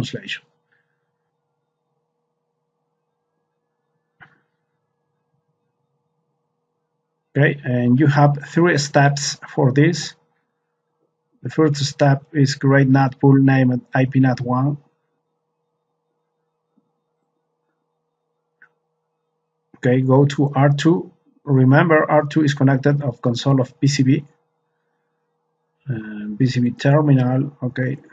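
A man speaks calmly and steadily into a close microphone, in bursts with pauses.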